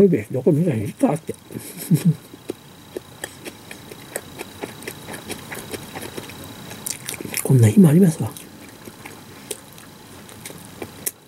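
A woman chews food noisily close by.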